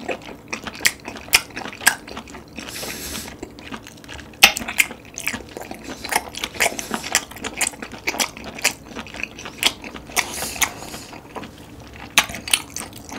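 A man chews wet, squishy food close to a microphone with smacking sounds.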